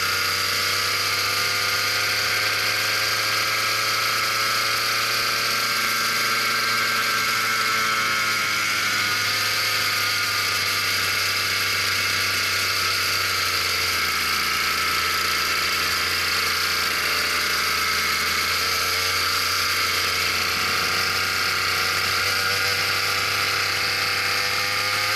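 A kart engine buzzes loudly up close, its pitch rising and falling with speed.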